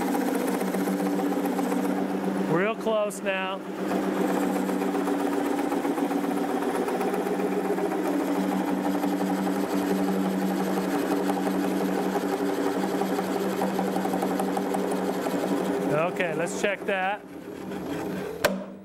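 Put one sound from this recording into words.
A chisel cuts and scrapes against spinning wood with a rough shaving sound.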